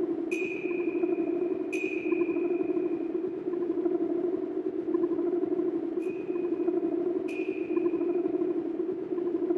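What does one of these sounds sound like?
Piano strings are struck and ring out high.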